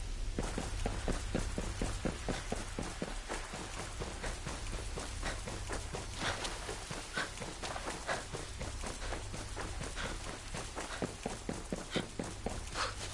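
Footsteps run quickly over ground and through leafy undergrowth.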